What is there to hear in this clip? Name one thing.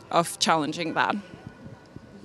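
A young woman speaks calmly into a microphone in a large echoing hall.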